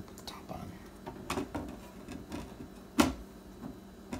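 A wooden lid taps into place on a crate.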